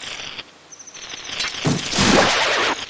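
A chain whirs out rapidly.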